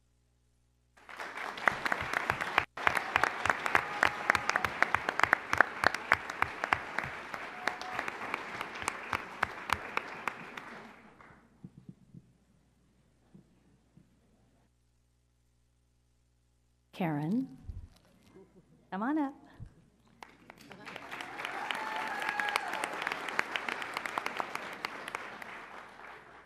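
A large crowd applauds in a big room.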